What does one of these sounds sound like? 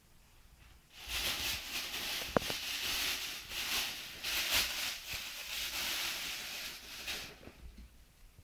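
A plastic bag rustles and crinkles loudly.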